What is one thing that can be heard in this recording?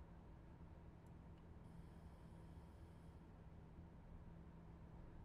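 Train wheels clatter softly on the rails.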